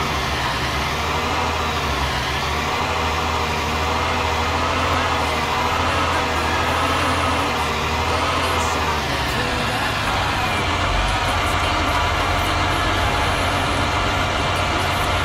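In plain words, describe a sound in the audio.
A tractor engine hums steadily as it drives slowly.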